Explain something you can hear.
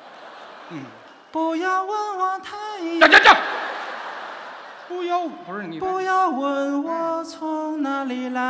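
A second middle-aged man answers into a microphone.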